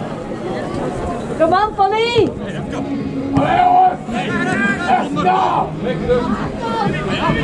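Men shout to each other outdoors across an open pitch.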